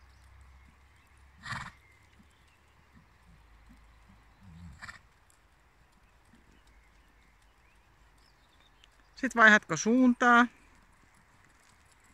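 A horse's hooves thud on sand as it trots.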